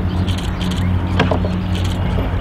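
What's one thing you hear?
A dog thumps onto a wooden jumping wall.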